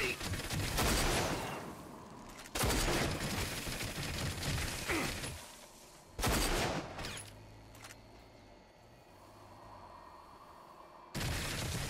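A dune buggy engine roars.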